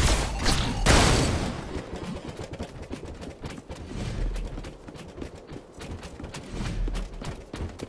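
Magic blasts and weapon hits crackle in a video game battle.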